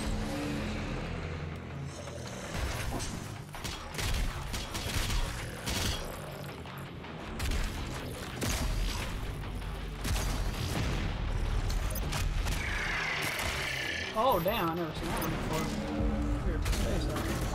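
Explosions boom.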